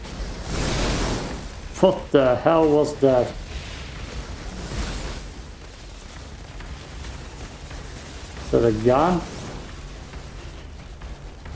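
Game weapons fire and blast loudly.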